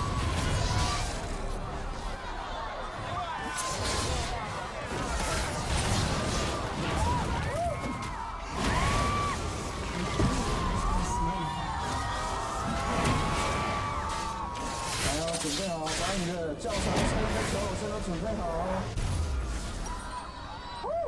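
Video game battle effects clash, zap and burst in quick succession.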